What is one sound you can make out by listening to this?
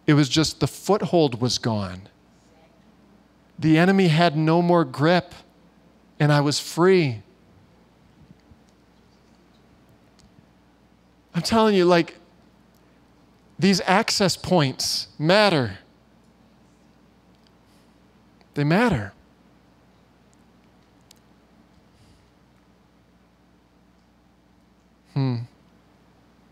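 A man speaks with animation through a microphone, with long pauses.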